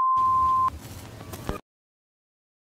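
Static crackles and hisses over a steady beep.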